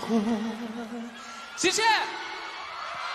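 A young man sings into a microphone with a vibrato, rising to a high note.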